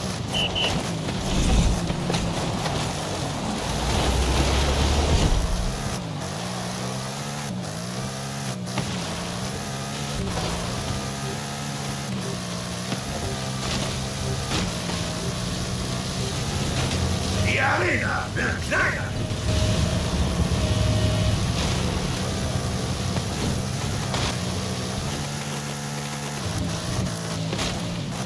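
An off-road engine drones and revs steadily as a truck speeds across rough ground.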